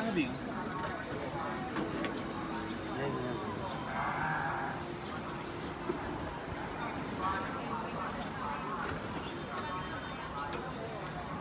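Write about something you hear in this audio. A metal rod scrapes and knocks against the inside of a clay oven.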